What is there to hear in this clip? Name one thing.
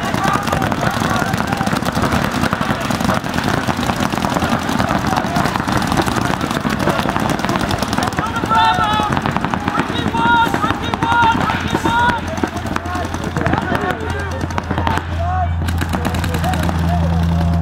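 Paintball guns fire in rapid bursts of sharp pops.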